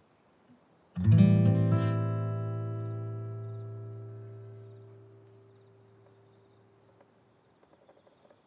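An acoustic guitar chord is strummed once and rings out slowly.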